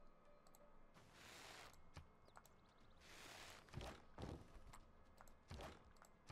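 Arrows whoosh through the air in quick volleys.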